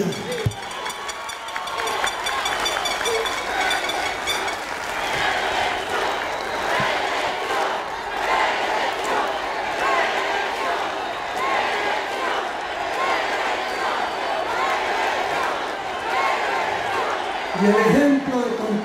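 A man speaks through a microphone, heard over loudspeakers.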